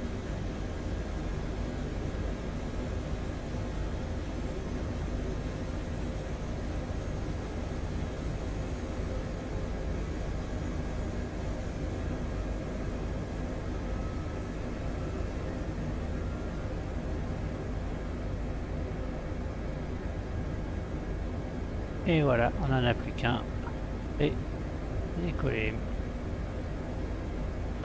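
An aircraft engine hums steadily.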